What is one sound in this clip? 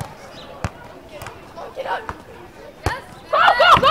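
A volleyball thuds as players strike it.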